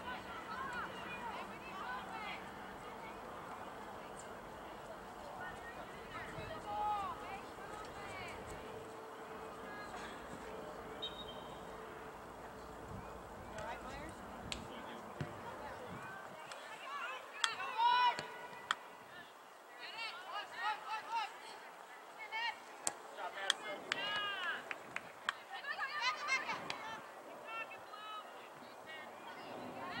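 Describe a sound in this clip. A crowd of spectators shouts and cheers outdoors at a distance.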